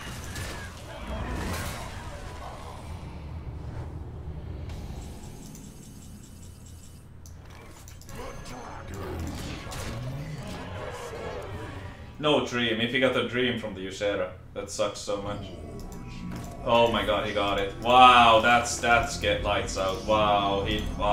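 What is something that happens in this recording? Game sound effects chime, whoosh and crash.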